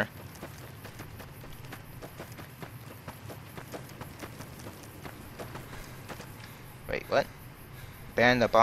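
Footsteps crunch steadily on dry gravel.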